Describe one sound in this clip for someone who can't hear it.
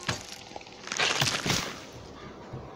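An axe strikes with a heavy thud.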